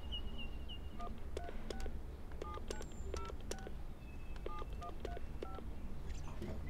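Phone keys beep as a number is dialed.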